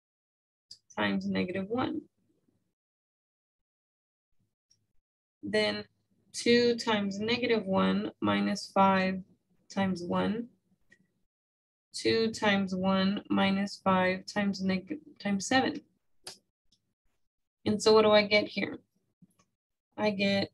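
A woman explains calmly into a microphone, speaking in bursts with pauses.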